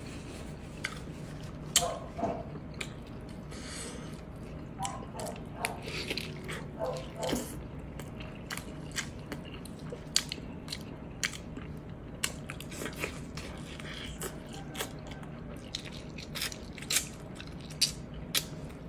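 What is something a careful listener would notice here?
Fingers squish and tear through soft, saucy food.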